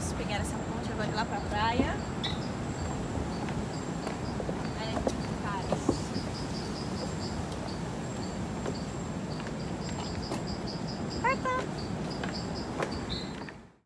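Footsteps knock on a wooden walkway.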